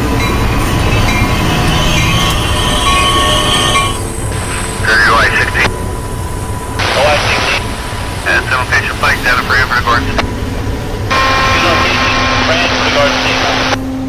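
A railway crossing bell rings steadily.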